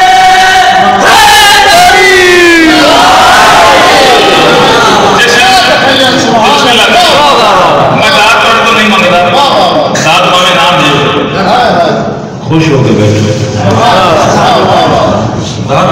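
A man sings loudly through a microphone, echoing in a hall.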